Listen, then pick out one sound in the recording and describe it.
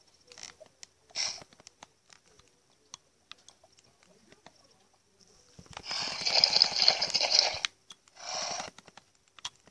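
A horse snorts loudly.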